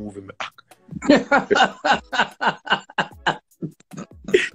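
A man laughs loudly over an online call.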